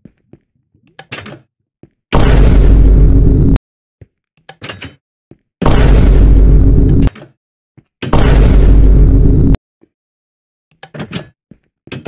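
An iron door creaks open and shuts.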